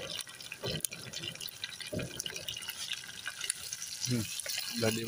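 Food sizzles and spatters in hot oil in a pan.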